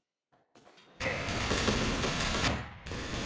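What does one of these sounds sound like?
A machine gun fires a long, rapid burst.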